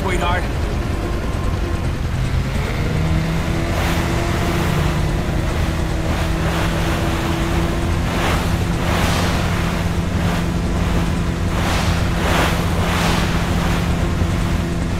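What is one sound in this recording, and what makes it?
Water sprays and splashes against a speeding jet ski.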